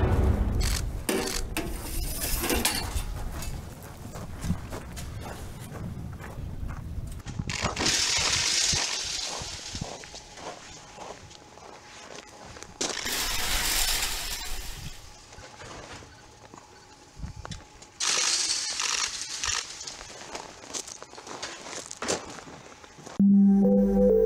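A shovel scrapes against metal.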